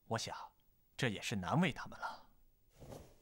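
A middle-aged man answers calmly, close by.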